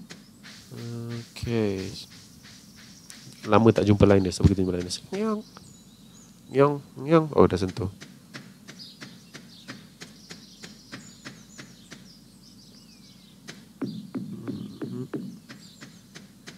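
Light footsteps patter on a dirt path.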